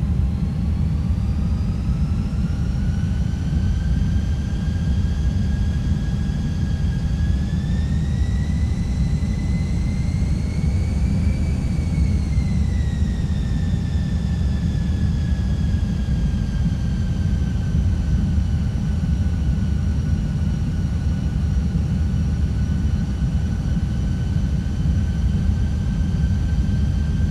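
Jet engines drone with a high whine that slowly rises and falls in pitch.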